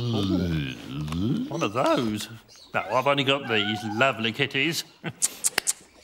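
An elderly man talks calmly.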